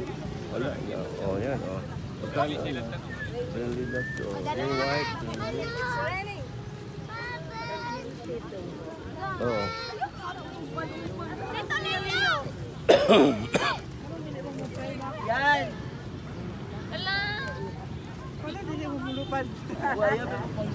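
Pigeons flap their wings as they take off.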